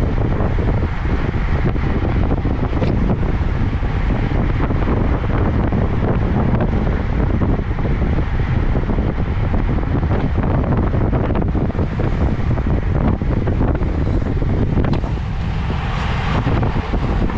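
Strong wind rushes and buffets loudly past a moving bicycle.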